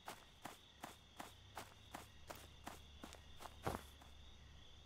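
Footsteps tread steadily on soft ground.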